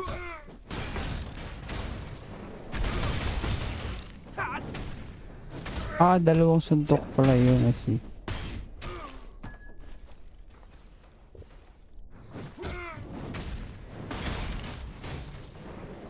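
Game combat effects crash and whoosh as spells are cast.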